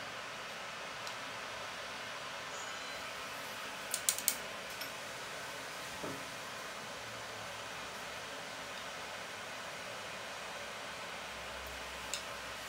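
A small spoon taps and clinks against a metal cup.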